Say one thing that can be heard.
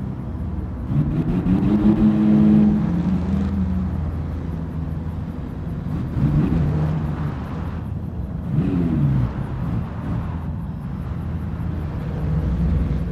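A sports car engine revs high and drops in pitch as the car drifts.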